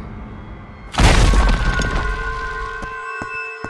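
A large creature crashes loudly through a brick wall.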